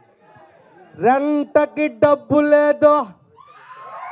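A man sings loudly into a microphone, heard through loudspeakers.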